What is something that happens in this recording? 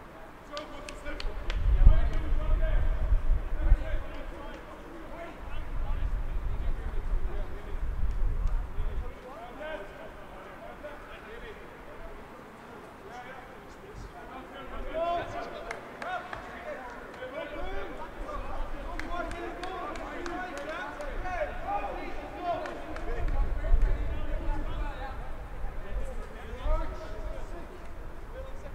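Young men shout calls to each other outdoors.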